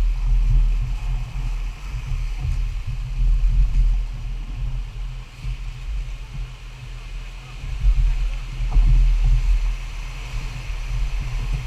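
Rapids rush and churn steadily nearby.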